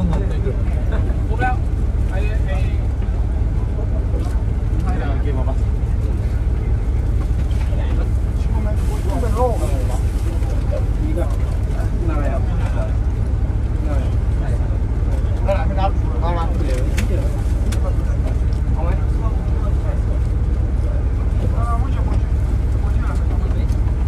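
A young man talks calmly close to the microphone.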